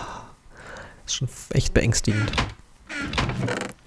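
A wooden chest creaks shut.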